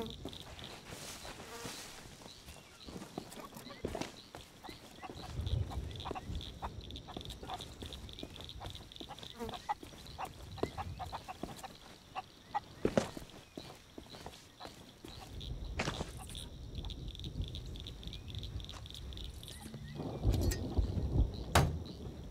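Footsteps crunch softly on sand and grass.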